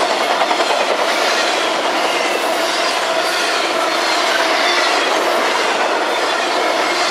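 Steel wheels squeal and screech on the rails.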